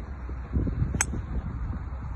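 A golf club strikes a ball off the tee with a sharp crack.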